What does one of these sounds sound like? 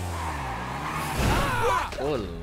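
A vehicle crashes with a loud thump.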